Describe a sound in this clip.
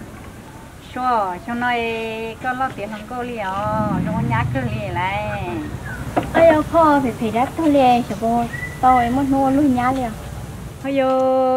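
An older woman talks with animation nearby.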